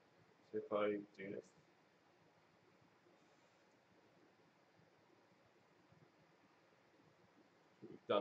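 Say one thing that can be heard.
A young man speaks briefly and casually into a nearby microphone.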